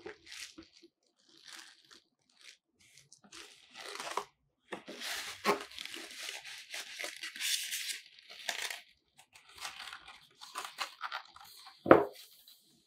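Gloved hands rustle and rub against packaging.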